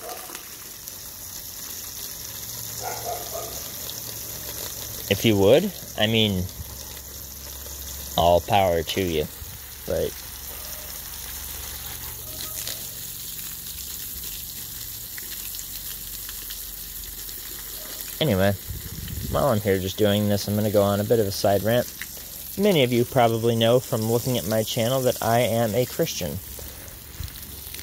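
Water sprays from a hose and patters onto plants and soil.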